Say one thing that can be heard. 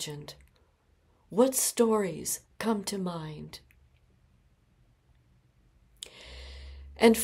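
An elderly woman speaks calmly and close to the microphone.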